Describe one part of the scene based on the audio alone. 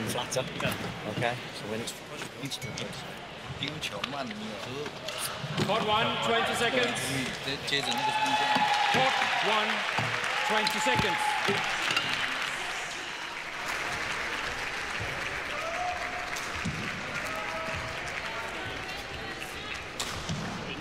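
A large crowd cheers and murmurs in an echoing arena.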